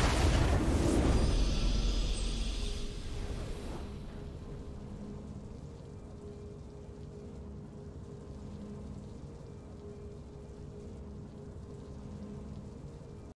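A victory fanfare plays softly.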